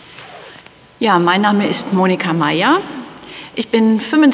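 A woman sings into a microphone in an echoing hall.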